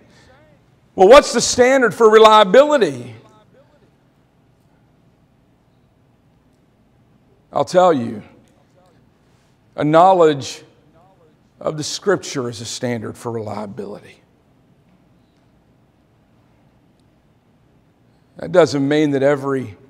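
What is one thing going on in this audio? A man preaches through a microphone in a large room, speaking with emphasis in bursts and pauses.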